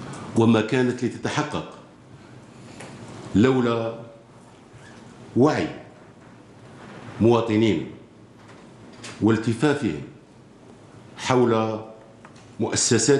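A middle-aged man reads out slowly and formally into microphones, with pauses between phrases.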